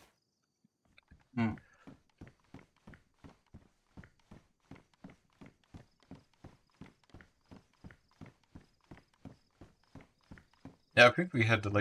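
Footsteps thud rapidly and evenly on wooden stairs.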